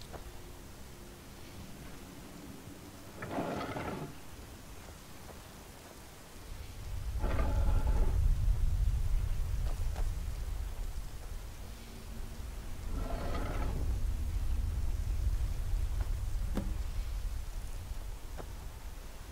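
Magical energy crackles and hums steadily.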